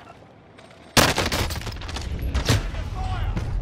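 Rapid gunfire rattles loudly and close.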